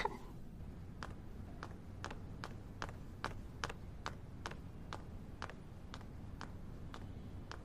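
Footsteps clack steadily down stairs and across a hard floor.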